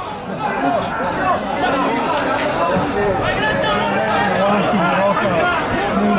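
A crowd in the stands chatters and shouts outdoors.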